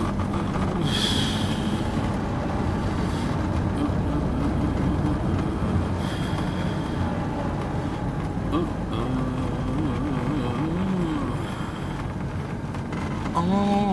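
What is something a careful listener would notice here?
A car engine hums steadily from inside the car as it drives.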